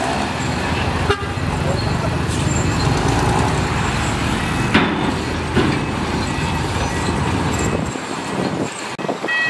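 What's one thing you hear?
Dirt and rocks pour out of a tipping truck bed with a rattling crunch.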